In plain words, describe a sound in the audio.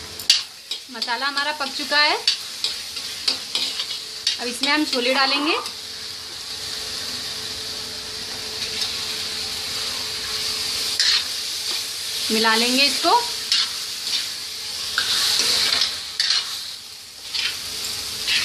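Food sizzles and hisses in a hot pan.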